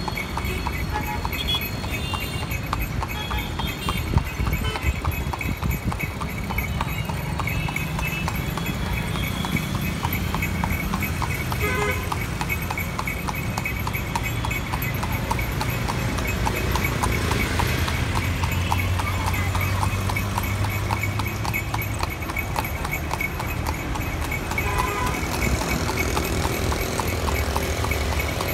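A horse's hooves clop on asphalt.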